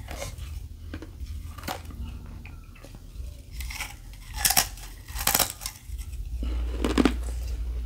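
A woman slurps and sucks wetly on ice, close up.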